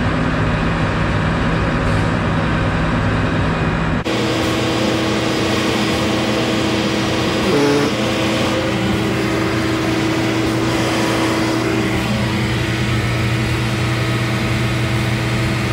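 A heavy machine's diesel engine runs with a low, steady hum.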